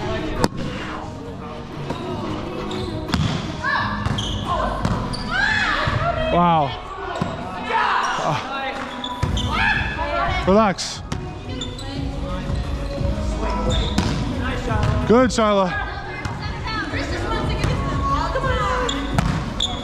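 Hands strike a volleyball with sharp slaps that echo in a large hall.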